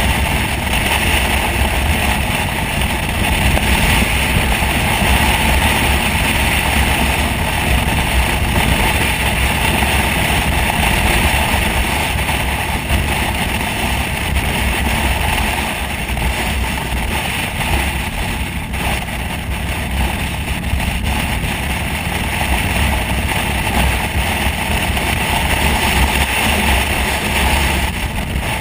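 A motorcycle engine hums steadily while cruising.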